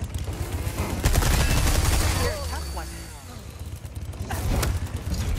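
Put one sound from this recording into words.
A chainsaw revs and roars.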